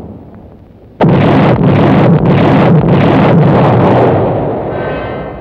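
Explosions roar and rumble.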